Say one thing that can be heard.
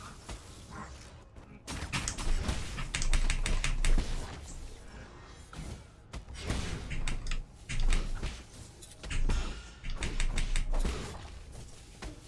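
Game sword slashes and impacts crackle in quick bursts.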